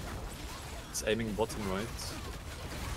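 Magic blasts whoosh and boom as an attack lands.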